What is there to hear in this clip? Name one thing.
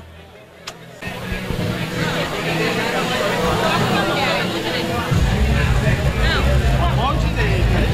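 A crowd chatters in a noisy room.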